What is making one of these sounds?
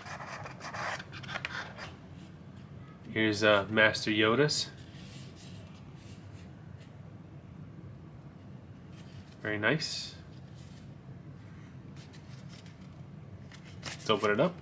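Hands handle a small cardboard box with soft scraping and tapping.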